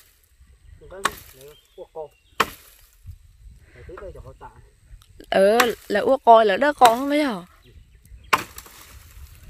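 A machete chops into branches with sharp thwacks.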